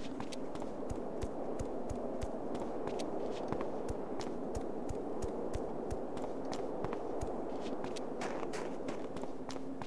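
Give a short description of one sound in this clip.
Footsteps crunch quickly and steadily on a snowy stone path.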